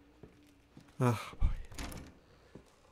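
A wooden door is pushed open.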